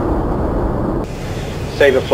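An engine hums steadily inside a cockpit.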